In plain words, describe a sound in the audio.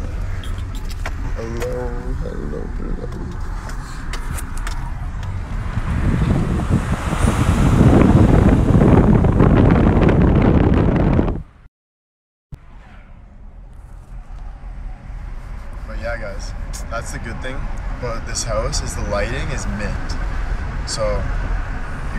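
A car engine hums steadily with road rumble.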